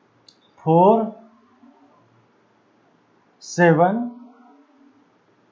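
A man speaks clearly into a microphone, in short phrases.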